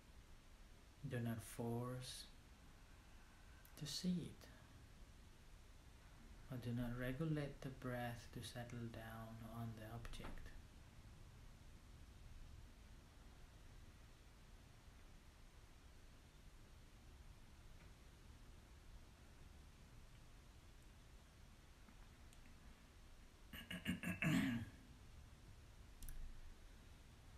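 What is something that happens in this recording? A man speaks calmly and slowly into a close microphone, with long pauses.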